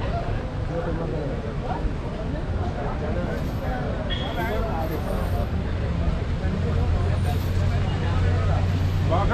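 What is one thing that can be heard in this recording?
A crowd of men chatters loudly nearby, outdoors.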